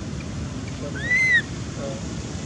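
A baby monkey gives a short, high squeal.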